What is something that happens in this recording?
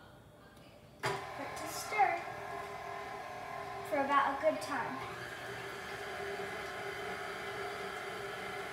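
A stand mixer starts up and whirs steadily.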